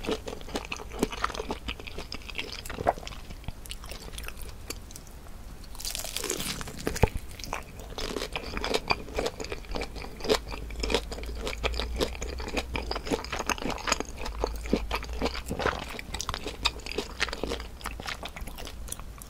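A woman chews crunchy fried food close to a microphone.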